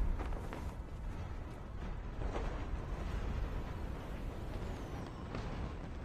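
Wind rushes past a parachute.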